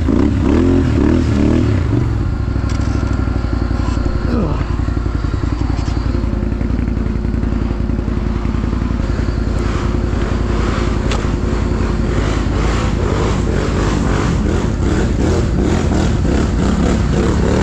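Tyres crunch over dry leaves and twigs.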